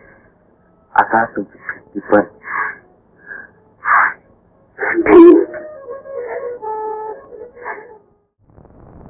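A woman speaks emotionally, heard through an old film soundtrack.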